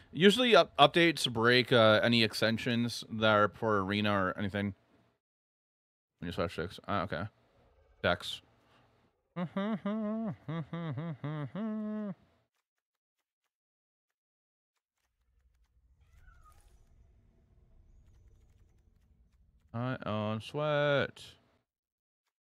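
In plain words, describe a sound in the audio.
A man talks casually and animatedly into a close microphone, in short bursts with pauses.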